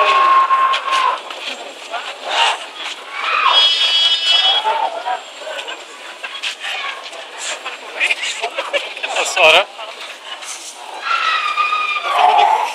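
A crowd of men and women chatters and calls out nearby outdoors.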